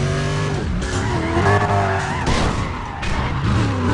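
A car crashes with a loud thud against a barrier.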